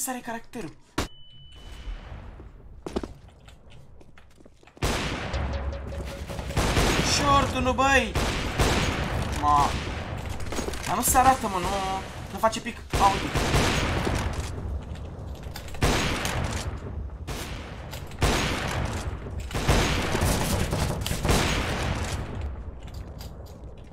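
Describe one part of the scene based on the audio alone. A sniper rifle fires loud single shots, with echoes.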